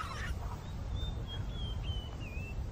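A bird of prey cries out with a thin, wavering whistle.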